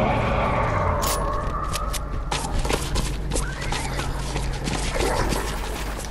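Footsteps patter quickly over grass and wet ground.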